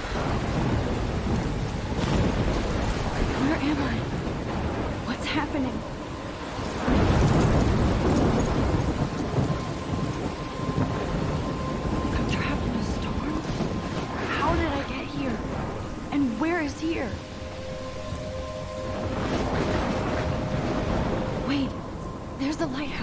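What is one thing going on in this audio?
A young woman speaks softly and breathlessly, close by.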